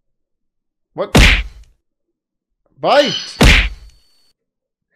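A retro video game plays a sharp hit sound effect during a battle.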